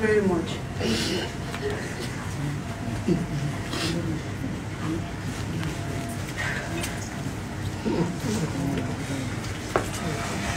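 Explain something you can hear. A woman talks in an emotional, tearful voice close to a microphone.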